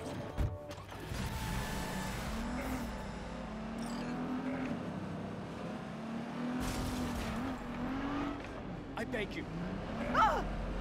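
A car engine revs and roars as it speeds along.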